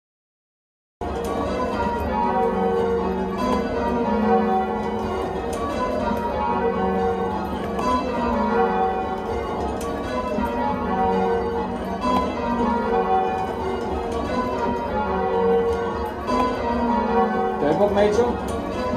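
Church bells ring out in a rapid, overlapping sequence of chimes.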